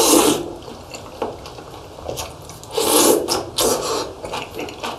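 A young man slurps food loudly from a spoon.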